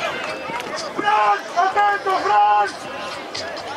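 Spectators cheer and shout loudly for a moment.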